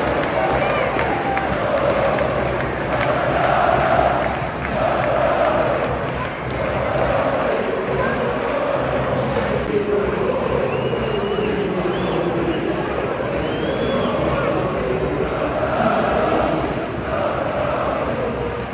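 A large stadium crowd chants loudly in unison, echoing outdoors.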